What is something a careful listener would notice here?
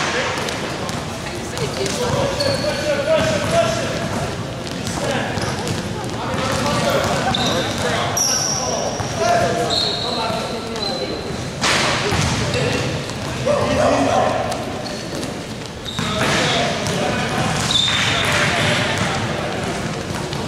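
A basketball bounces on the floor.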